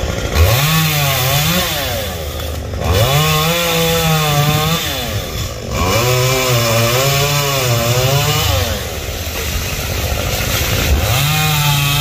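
A chainsaw engine revs up and down in repeated bursts.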